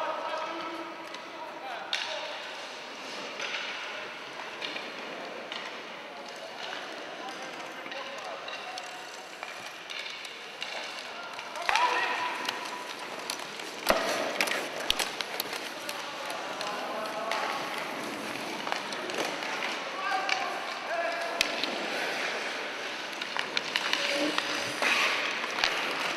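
Sled blades scrape and hiss across the ice.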